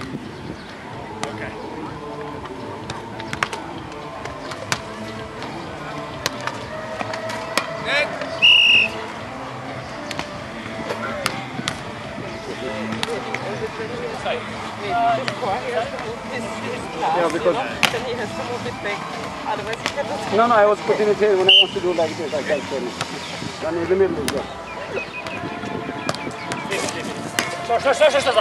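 Men call out and shout to each other outdoors.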